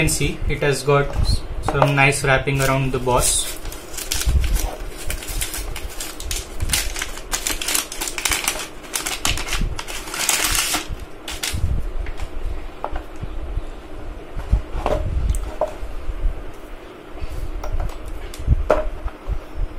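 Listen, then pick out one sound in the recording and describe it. A plastic tray creaks and knocks as things are lifted out.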